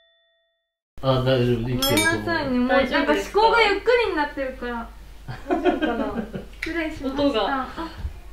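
Young women talk and laugh with animation, close by.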